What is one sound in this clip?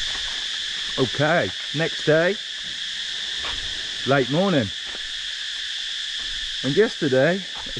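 A middle-aged man speaks close by in short, calm phrases.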